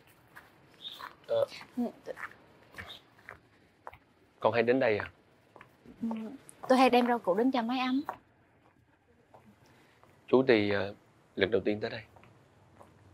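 A young woman speaks calmly up close.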